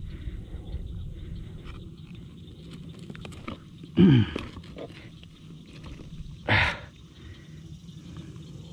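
A fish flaps and slaps against hands.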